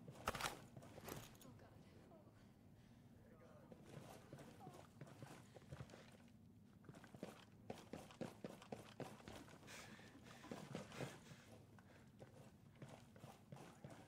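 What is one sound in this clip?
Footsteps tread across a hard floor indoors.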